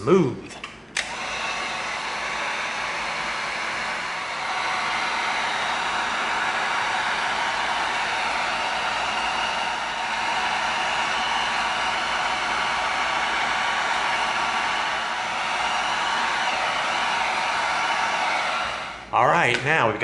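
A heat gun blows with a steady roar.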